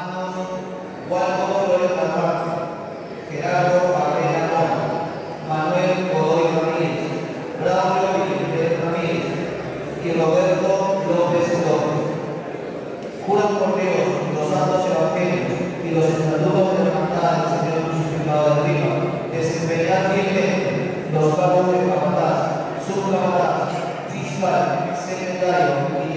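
A man recites steadily into a microphone, heard through a loudspeaker in an echoing room.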